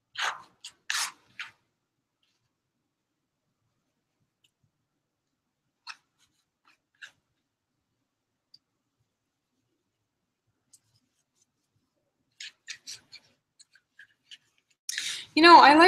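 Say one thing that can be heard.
A knife scrapes across paper in short strokes.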